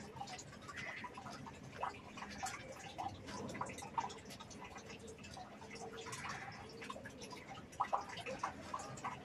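A toothbrush scrubs against teeth.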